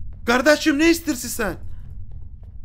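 A man speaks loudly and animatedly close to a microphone.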